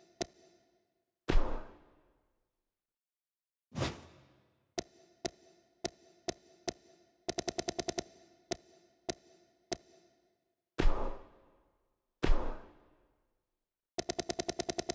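Short menu blips tick in quick succession.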